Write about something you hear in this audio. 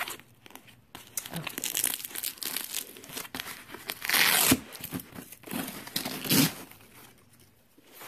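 Nylon fabric rustles and crinkles as a bag is handled.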